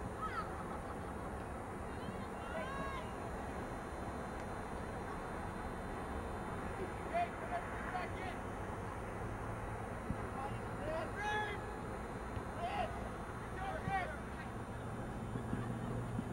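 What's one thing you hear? A soccer ball is kicked with a dull thump.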